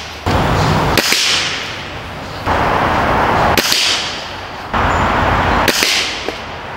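A rifle fires sharp shots outdoors.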